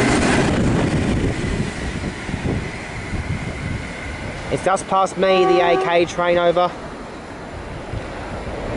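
A train rumbles away into the distance and fades.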